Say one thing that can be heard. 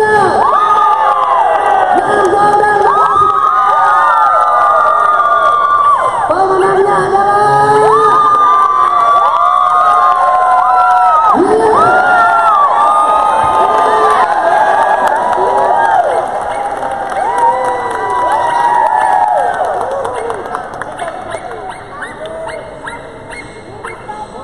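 Many dogs bark and yelp in a large echoing hall.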